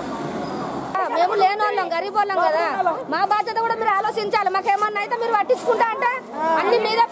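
A middle-aged woman speaks loudly and with agitation close by.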